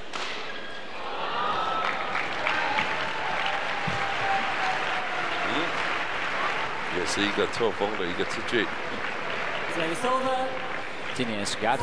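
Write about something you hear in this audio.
A crowd in a large hall cheers and claps.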